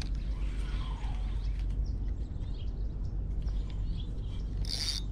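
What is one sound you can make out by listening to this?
A fishing reel clicks softly as fingers handle it.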